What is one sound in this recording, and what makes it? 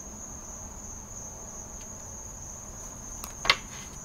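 Cards are shuffled by hand.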